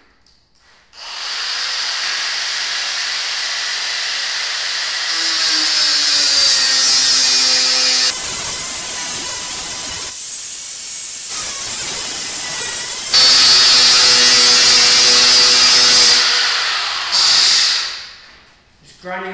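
An angle grinder whines against steel.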